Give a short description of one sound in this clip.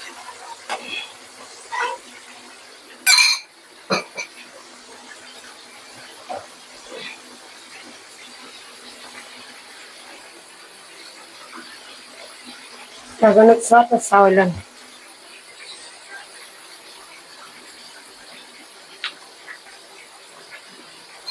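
Oil sizzles and bubbles softly in a pan.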